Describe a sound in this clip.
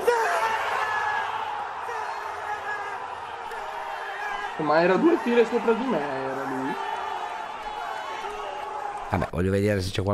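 A crowd of young men shouts and cheers wildly.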